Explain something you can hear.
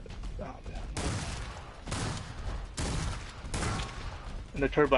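A pistol fires loud, sharp shots.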